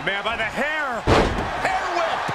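A body slams heavily onto a wrestling ring mat with a loud thud.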